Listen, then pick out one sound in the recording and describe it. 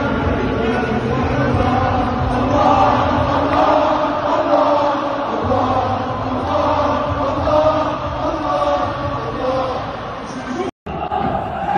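A large stadium crowd sings and chants loudly together, echoing around the stands.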